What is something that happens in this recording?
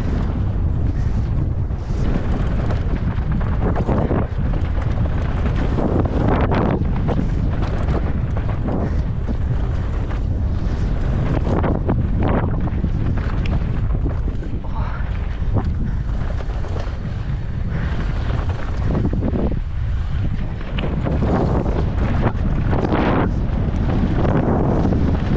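Wind rumbles loudly across a close microphone.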